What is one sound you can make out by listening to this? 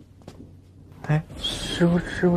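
A young man asks a worried question nearby.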